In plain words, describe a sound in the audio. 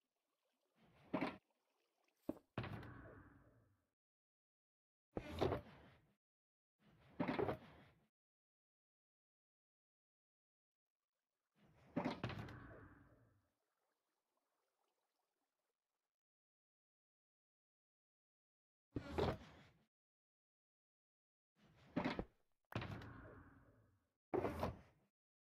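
Video game chests and boxes open and close with short creaking, shuffling sounds.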